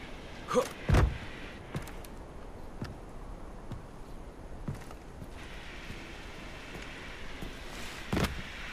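Footsteps thud steadily over wooden planks.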